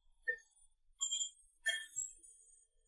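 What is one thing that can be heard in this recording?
Billiard balls click against each other on a table.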